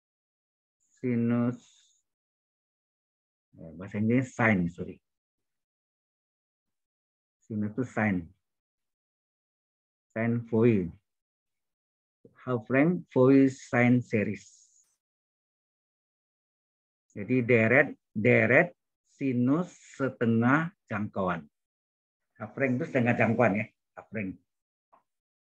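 A man speaks calmly in short phrases through an online call, with pauses between them.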